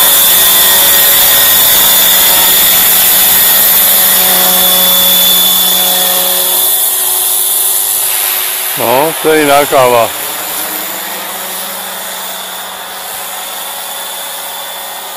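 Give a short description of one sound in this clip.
A small model helicopter's rotor and motor whine steadily, growing fainter as it climbs away.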